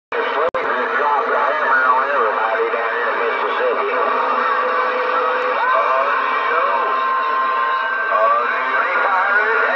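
A radio hisses with crackling static and warbling, garbled signals through its small loudspeaker.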